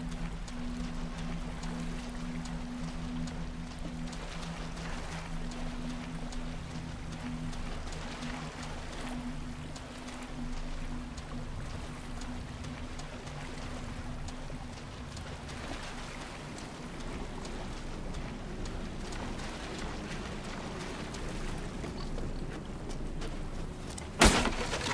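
Footsteps crunch slowly over boards and snowy ground.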